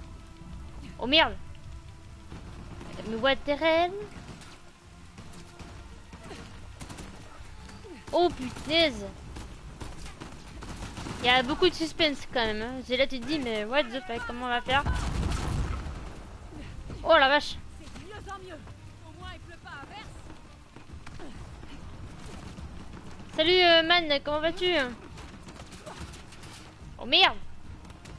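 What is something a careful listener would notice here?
A young woman speaks into a microphone in short, animated bursts.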